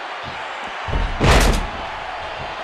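A body slams hard onto a wrestling ring with a heavy thud.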